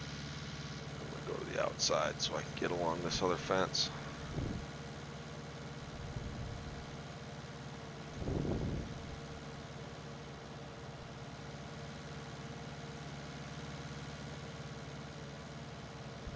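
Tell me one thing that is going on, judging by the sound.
A mower whirs as it cuts grass.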